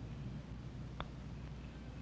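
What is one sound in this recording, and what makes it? A putter taps a golf ball.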